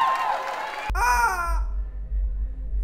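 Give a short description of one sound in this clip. A rubber chicken squeaks loudly.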